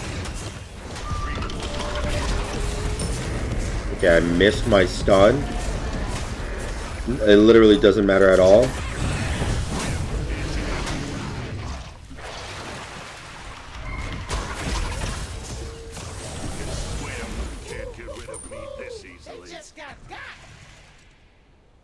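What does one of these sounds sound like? Game battle effects whoosh, crackle and clash.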